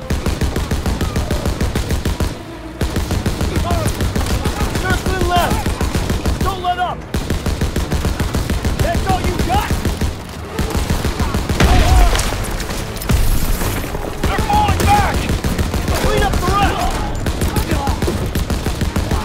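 A mounted machine gun fires rapid, rattling bursts.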